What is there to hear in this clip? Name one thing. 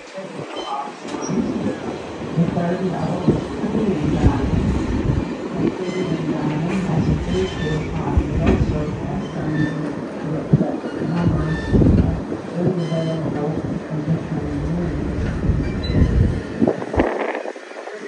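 A train rumbles steadily along its track.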